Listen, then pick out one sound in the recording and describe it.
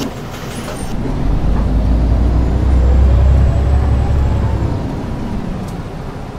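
A bus engine revs up and then settles as the bus pulls away.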